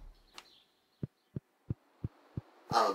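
Footsteps thud at an even pace.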